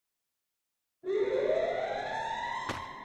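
A game sound effect of an ice wall forming rises with a ringing whoosh.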